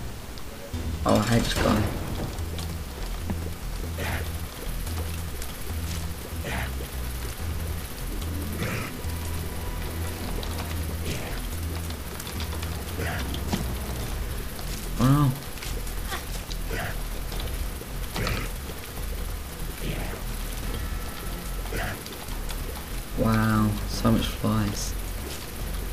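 A monster lets out deep, gurgling roars.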